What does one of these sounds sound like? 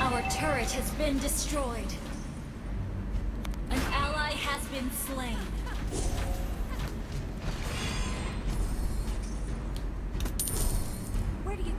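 Video game battle effects whoosh, zap and clash.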